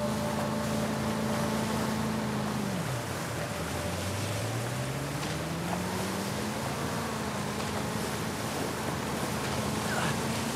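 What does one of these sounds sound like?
An outboard motor roars steadily, its pitch dipping and then rising again.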